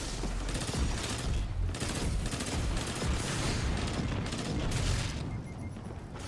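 Gunfire and energy blasts crackle loudly in a video game battle.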